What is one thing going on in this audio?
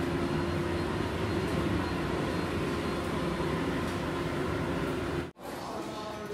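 A tumble dryer hums steadily as its drum turns.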